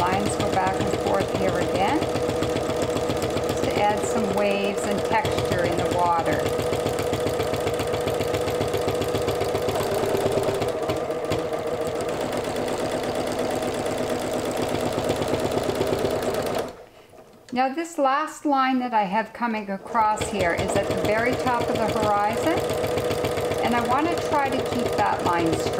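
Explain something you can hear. A sewing machine runs with a fast, steady whirring hum.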